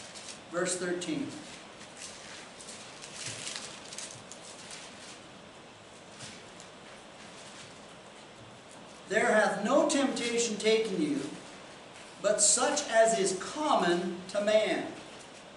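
An older man reads aloud and speaks calmly, close by.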